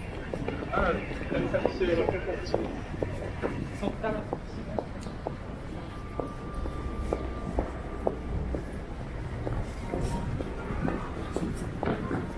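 Footsteps tap steadily on pavement close by.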